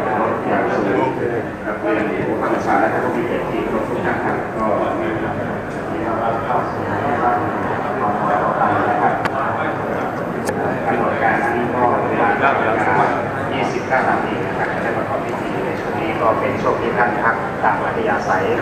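A crowd of men and women chatter all around in a large echoing hall.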